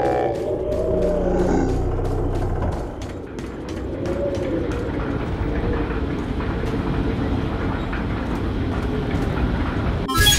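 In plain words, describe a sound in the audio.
Footsteps thud quickly and evenly on hard ground and stairs.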